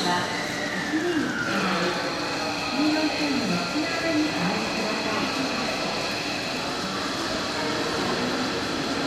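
A train pulls in, its motors whining down in pitch.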